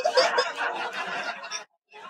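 A baby laughs loudly.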